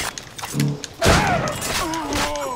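A gun fires with a loud bang.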